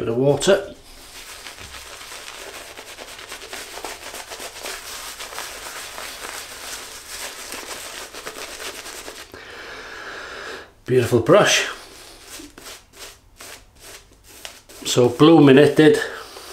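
A synthetic shaving brush swishes as it lathers soap on a stubbled face.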